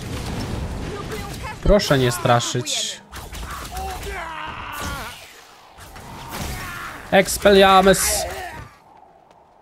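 Magic spells crackle and burst with sharp blasts.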